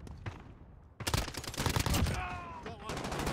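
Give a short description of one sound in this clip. Gunfire bursts loudly, close by.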